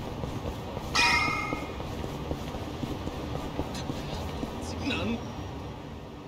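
Quick running footsteps slap on pavement.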